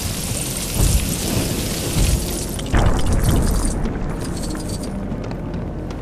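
Coins jingle and clink as they scatter and are collected.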